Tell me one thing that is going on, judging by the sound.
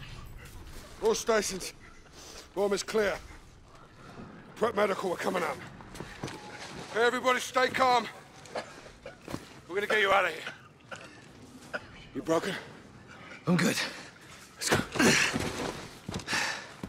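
A man speaks in short, strained bursts close by.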